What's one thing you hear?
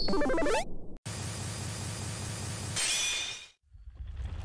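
Metal clangs in a heavy, ringing impact.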